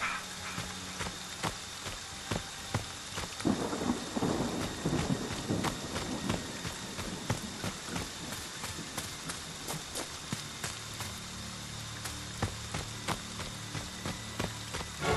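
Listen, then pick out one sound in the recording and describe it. Footsteps run quickly through undergrowth.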